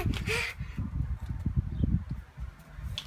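A toddler girl shrieks with laughter close by.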